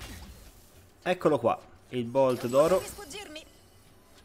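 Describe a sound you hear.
A young man talks with animation.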